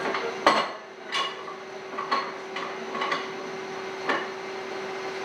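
Steel bars clank against each other on a metal table.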